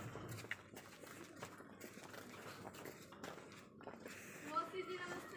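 Footsteps tread steadily on a paved street.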